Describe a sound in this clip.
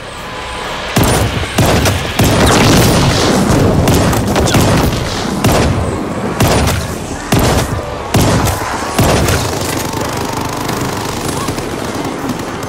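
Gunshots fire in rapid bursts, close by.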